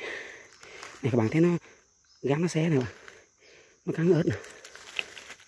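A toad croaks in short, deep calls close by.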